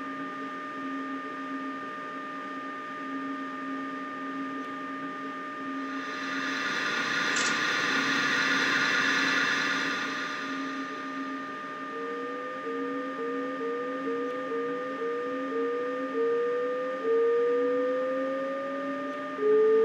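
An electric train's motor hums steadily.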